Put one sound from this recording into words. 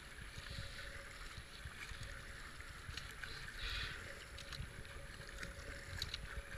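A paddle splashes into the water.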